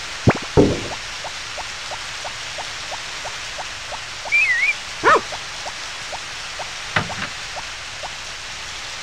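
Quick, light footsteps patter steadily on the ground.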